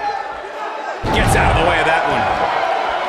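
A body slams hard onto a wrestling ring mat with a deep thud.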